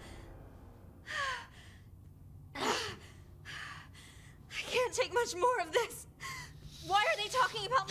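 A young woman speaks quietly and anxiously.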